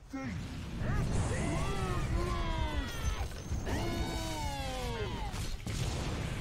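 A man talks excitedly into a microphone.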